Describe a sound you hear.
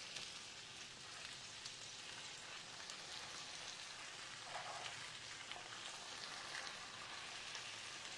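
Hands scoop raw chicken pieces off a cutting board with soft, wet sounds.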